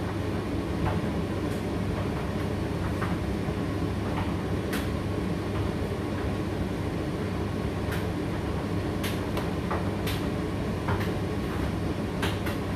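Clothes thump and click inside a turning tumble dryer drum.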